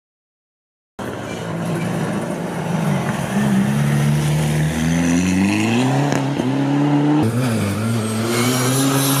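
A rally car engine revs hard and rises in pitch as the car speeds along.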